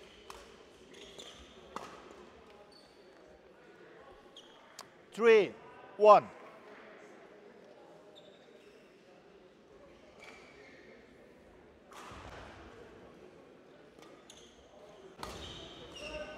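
A shuttlecock is struck sharply by rackets in an echoing hall.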